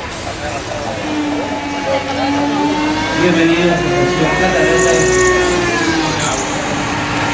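Train wheels squeal with a long, high, wavering screech as the train brakes.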